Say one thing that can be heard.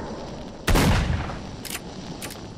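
A shotgun fires once with a booming echo.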